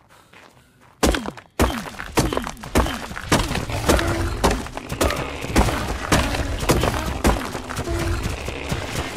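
A hatchet chops repeatedly at a wall with dull thuds.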